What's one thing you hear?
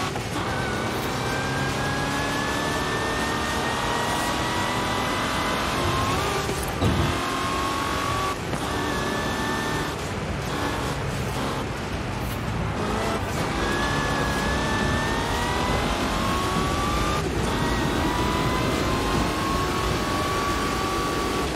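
A racing car engine roars steadily, its pitch rising as it speeds up and dropping at gear changes.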